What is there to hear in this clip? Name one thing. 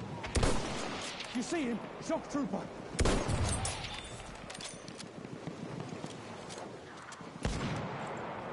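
Rifle shots crack loudly, each followed by an echo.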